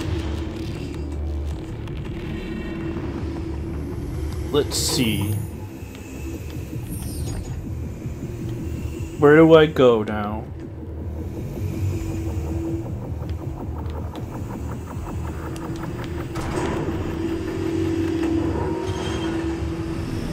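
Low droning game music hums steadily.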